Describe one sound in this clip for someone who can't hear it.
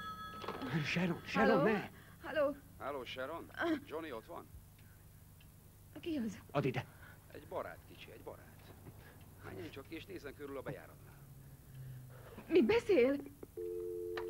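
A woman speaks urgently into a phone nearby.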